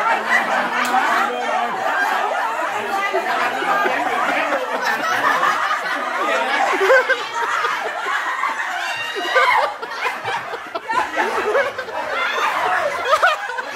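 A group of women and men chatter and laugh loudly close by.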